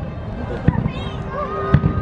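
A firework rocket whistles as it shoots upward.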